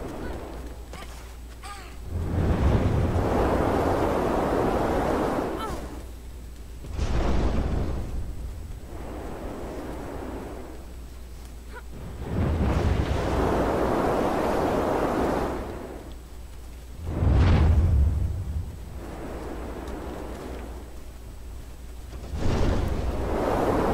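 Wind howls in strong gusts that swell and fade.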